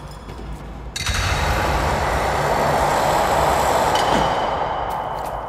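A rope creaks and whooshes as a figure slides down it.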